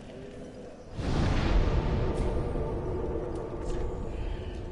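A fire flares up with a loud rushing whoosh.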